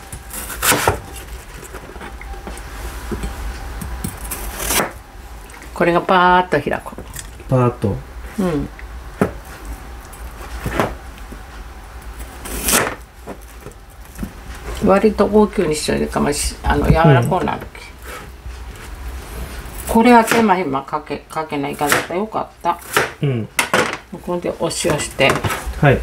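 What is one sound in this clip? A knife taps against a cutting board as it slices through soft food.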